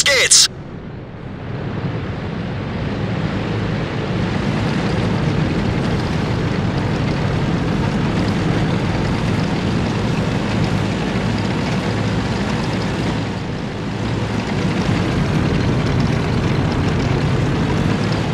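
A heavy tank engine rumbles steadily as the tank drives forward.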